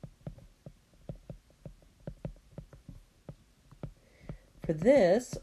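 A stylus taps and scratches on a tablet.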